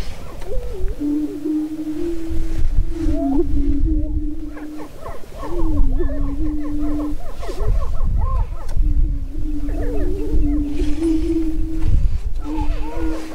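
Prairie chickens boom with low, hollow, humming calls, over and over.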